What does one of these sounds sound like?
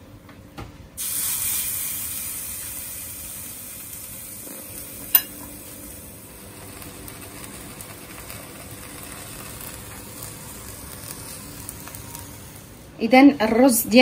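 Chicken sizzles softly on an electric grill.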